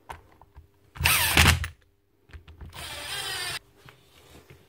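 An impact wrench whirs in short bursts.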